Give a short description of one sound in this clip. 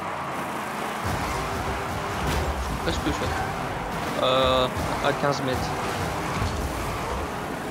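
A car's rocket boost roars steadily.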